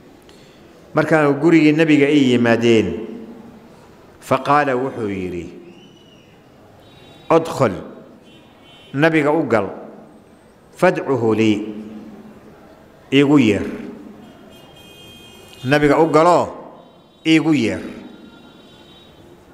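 A man speaks calmly into a microphone in short phrases with pauses.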